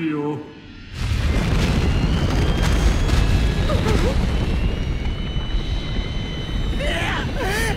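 A man cries out in panic.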